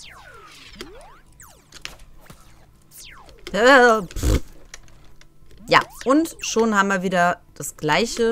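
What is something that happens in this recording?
Electronic game sound effects zap and chirp in quick bursts.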